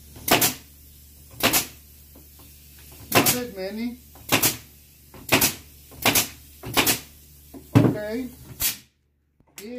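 A nail gun fires sharp bangs into wood.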